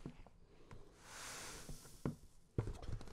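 Grain pours into a container with a soft rushing hiss.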